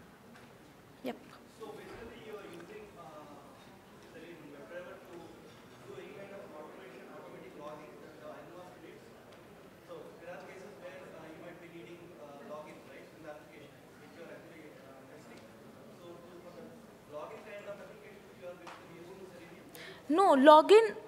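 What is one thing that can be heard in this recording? A young woman speaks calmly through a microphone in a large hall.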